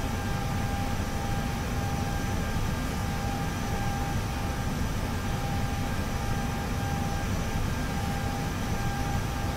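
A steady low engine rumble drones inside an aircraft cockpit.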